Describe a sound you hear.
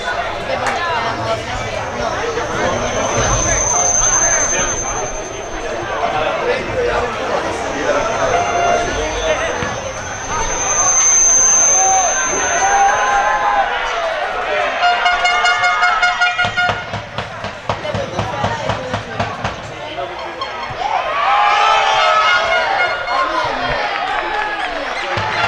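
Young players shout to one another across an open outdoor field.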